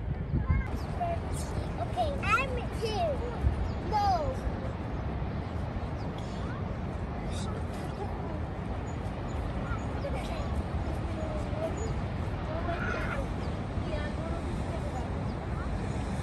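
Young children chatter and call out nearby.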